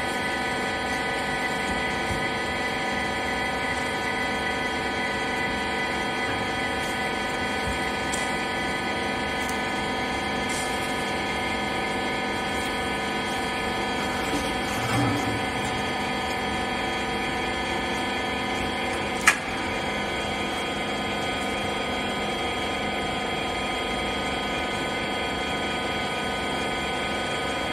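A baling machine hums steadily with a droning whine.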